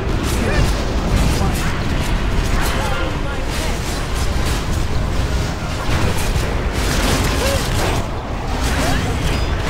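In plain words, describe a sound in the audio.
Fiery magic spells crackle and burst in a hectic battle.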